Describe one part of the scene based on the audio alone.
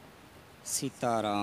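A man begins to sing through a microphone.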